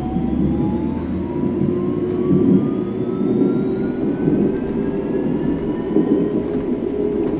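An electric motor whines, rising in pitch as the train speeds up.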